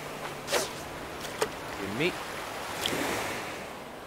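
A fishing float plops into the water.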